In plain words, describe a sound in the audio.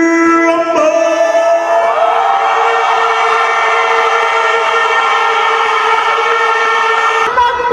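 A man calls out through a loudspeaker in a long, drawn-out, rising shout in a large echoing hall.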